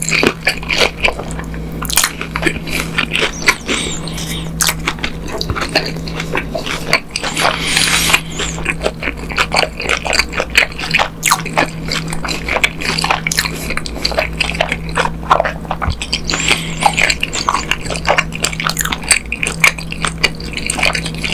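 A person chews crunchy fried food close to a microphone.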